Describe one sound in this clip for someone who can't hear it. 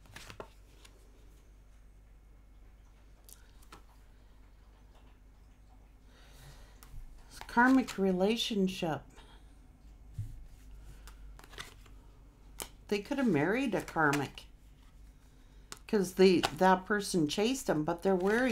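Cards shuffle and slap softly in a woman's hands.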